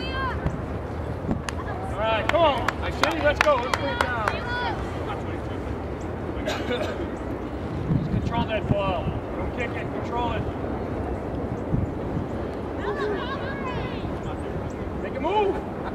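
Spectators on the sideline call out and cheer.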